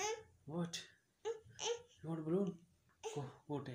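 A young girl speaks in a high, lively voice close by.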